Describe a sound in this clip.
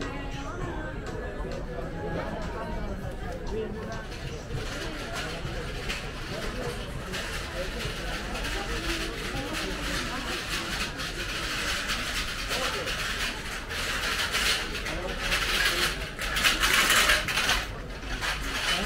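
Voices of many men and women chatter nearby in a busy outdoor street.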